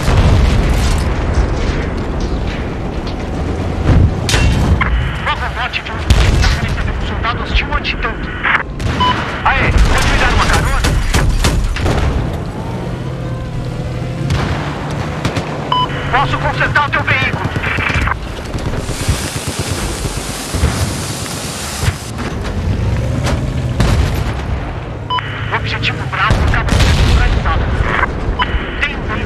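Gunfire and explosions boom loudly.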